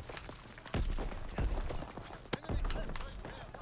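Gunfire booms in loud, short blasts.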